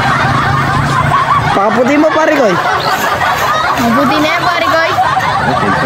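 A boy laughs close by.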